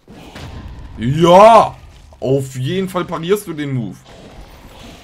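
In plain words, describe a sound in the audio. A young man exclaims loudly with excitement, heard through a microphone.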